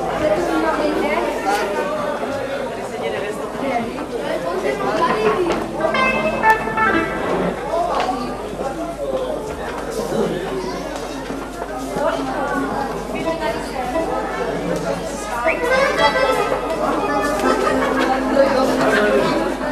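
A crowd of men and women chatter and talk over one another in an echoing hall.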